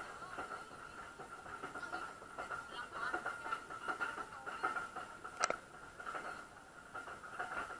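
Wind rushes past on an open-air ride outdoors.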